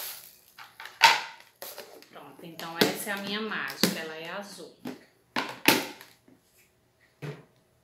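Plastic bowls knock and rattle together.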